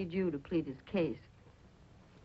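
A woman speaks earnestly, close by.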